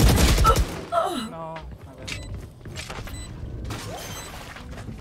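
Video game sound effects chime and whoosh.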